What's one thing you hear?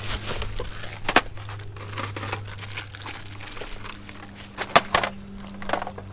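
Plastic and hard objects clatter as they are handled.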